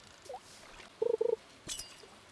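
A short chime rings as a fish bites.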